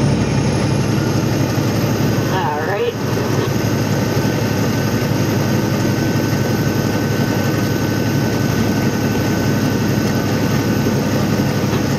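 A vehicle's engine hums steadily.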